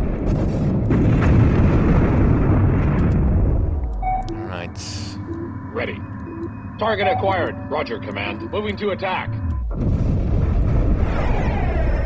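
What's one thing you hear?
Explosions rumble and roar in a heavy, booming din.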